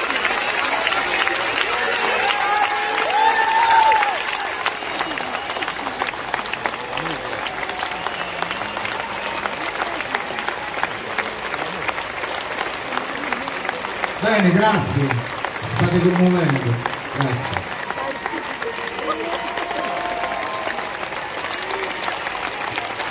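A large crowd cheers and claps outdoors.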